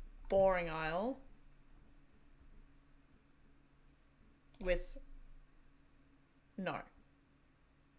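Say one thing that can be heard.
A young woman speaks in short, drawn-out phrases close to a microphone.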